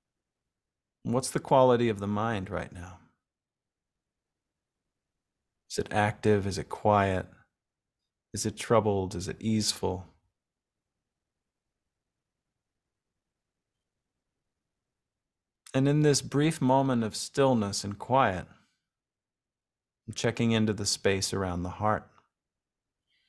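A man speaks calmly and clearly close to a microphone, in short phrases with pauses.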